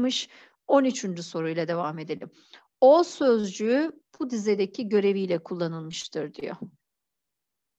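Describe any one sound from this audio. A woman speaks calmly and clearly into a microphone, as if teaching.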